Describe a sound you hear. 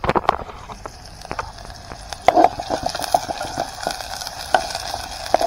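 A metal spoon scrapes and clinks against a pot while stirring.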